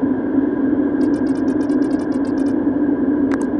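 Rapid soft electronic blips patter in quick succession.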